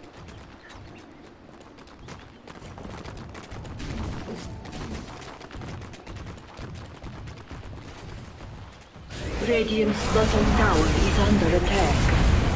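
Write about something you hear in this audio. Fantasy battle sound effects clash and burst with magic blasts.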